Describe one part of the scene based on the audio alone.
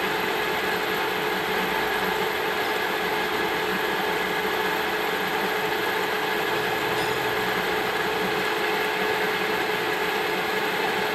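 A milling cutter grinds steadily through metal with a high whine.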